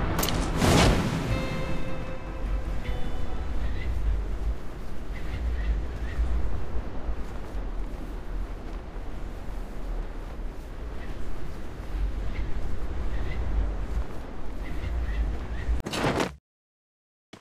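Wind rushes steadily past a gliding parachute.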